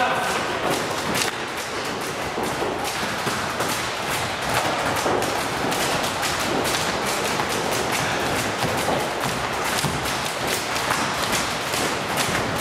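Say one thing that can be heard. Sneakers squeak and patter on a hard floor.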